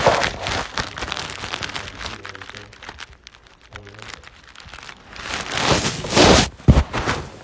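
A man breathes out a long, noisy exhale close by.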